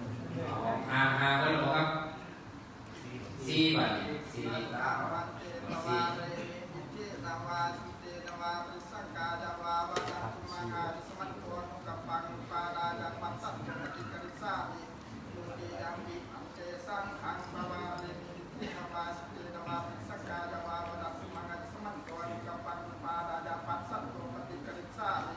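A man chants into a microphone, heard through a loudspeaker.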